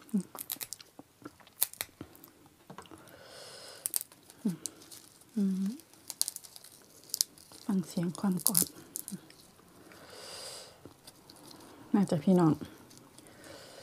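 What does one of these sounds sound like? Fresh herb leaves crackle and snap as they are torn by hand.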